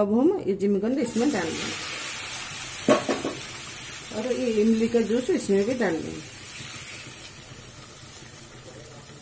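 Food sizzles in a hot pan and slowly quiets.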